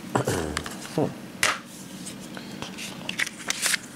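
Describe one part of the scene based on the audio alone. A plastic disc case clicks open.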